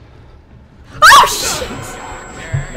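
A young woman screams in fright.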